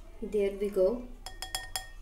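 A spoonful of powder drops softly into a glass bowl.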